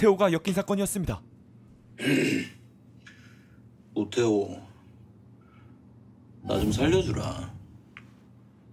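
A young man speaks pleadingly in a low, strained voice.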